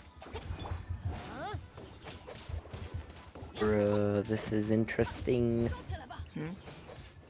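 Sword slashes whoosh and clang in quick bursts.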